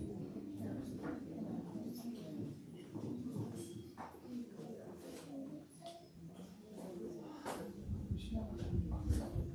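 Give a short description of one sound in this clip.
A woman speaks calmly into a microphone, heard through a loudspeaker in an echoing room.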